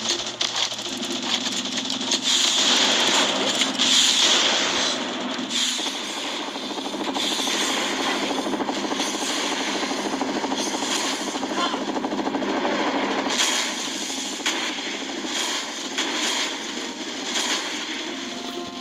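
Rapid gunfire crackles in a battle.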